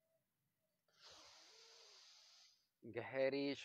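A man exhales forcefully.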